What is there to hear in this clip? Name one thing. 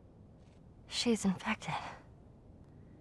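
A girl speaks anxiously.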